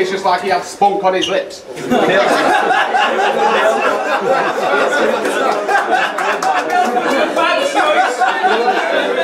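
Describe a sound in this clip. A man raps energetically through a loudspeaker.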